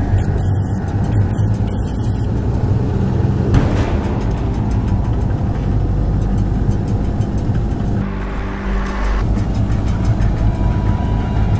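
An engine rumbles as a vehicle drives along.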